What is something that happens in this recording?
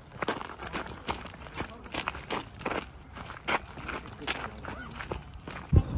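Footsteps crunch on a gravel path outdoors.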